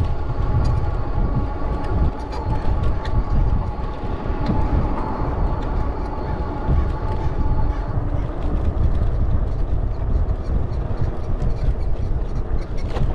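Wind rumbles loudly against a microphone outdoors.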